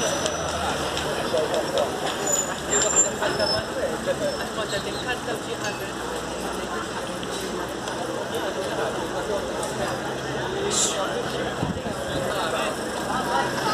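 A van engine hums nearby.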